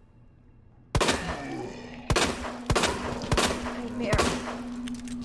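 A handgun fires several loud shots in an echoing room.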